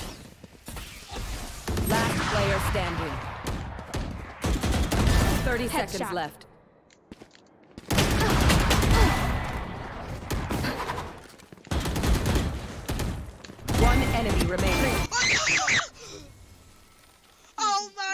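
A young man shouts excitedly into a microphone.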